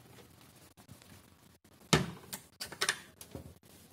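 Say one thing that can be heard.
A metal hatch door clicks open.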